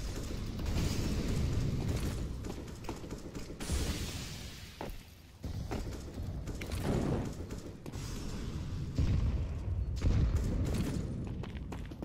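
Footsteps patter on stone nearby.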